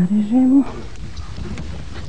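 A knife cuts through soft cheese.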